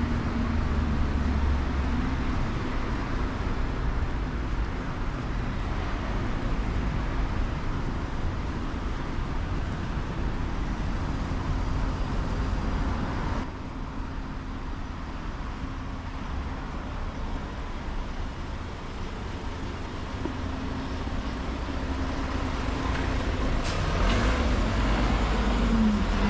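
Road traffic passes close by with a steady rumble.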